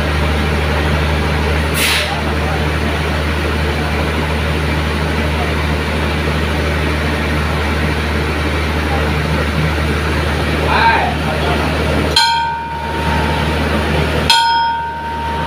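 A diesel train engine idles with a steady low rumble.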